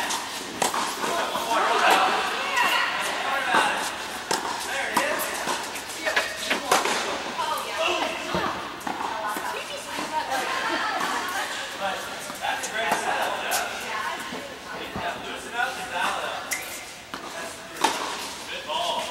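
Young women call out and chatter across the echoing hall.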